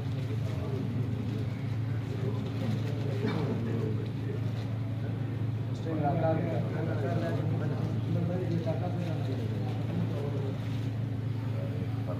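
Several men talk and call out nearby in a room.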